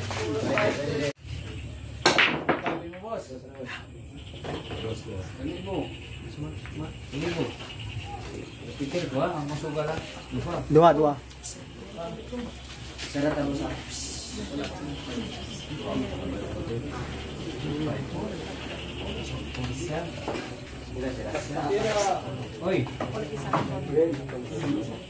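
Several men talk and call out nearby.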